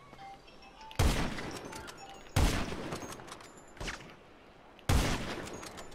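A sniper rifle fires loud shots that echo away.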